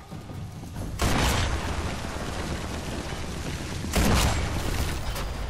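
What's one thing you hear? A rifle fires loud shots that echo and roll away.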